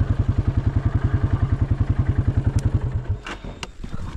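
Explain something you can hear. An engine idles with a steady low chugging, then cuts out.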